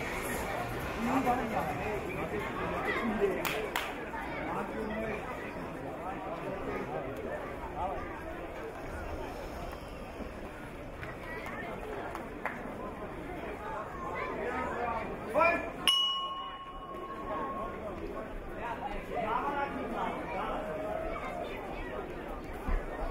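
A large crowd cheers and shouts in a big open space.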